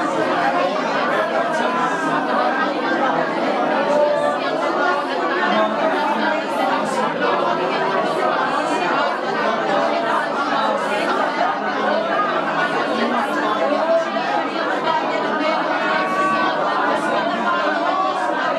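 A crowd of women and men pray aloud together, many voices overlapping with fervour.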